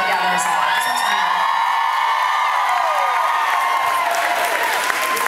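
A young woman sings loudly through a microphone over loudspeakers.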